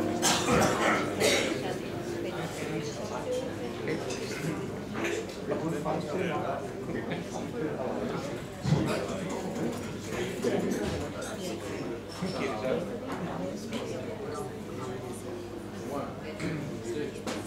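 A drummer plays softly on cymbals and drums.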